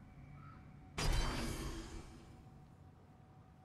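A bright chime and whoosh ring out as a game menu item is equipped, then fade.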